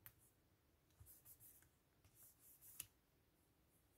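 Paper rustles softly under hands.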